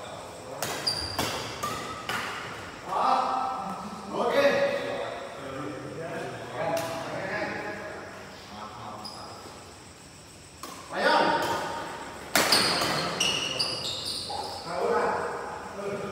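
Shoes squeak on a court floor in a large echoing hall.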